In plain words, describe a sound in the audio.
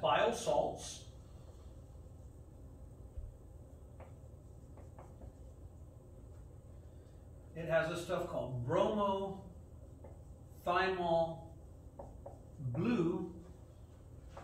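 A man speaks calmly, as if lecturing.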